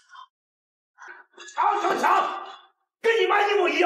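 A middle-aged man shouts angrily, close by.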